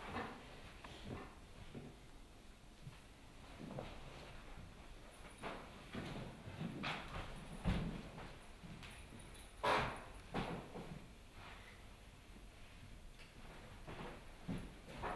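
Footsteps thud on a stage floor.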